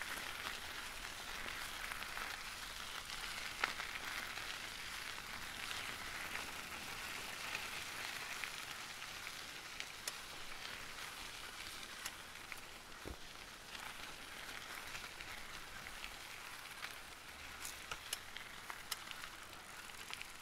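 Bicycle tyres hum steadily on a paved path.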